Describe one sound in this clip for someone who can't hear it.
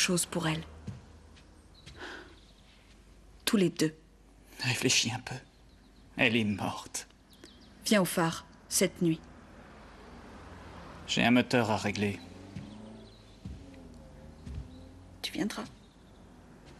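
A young woman speaks quietly and earnestly, close by.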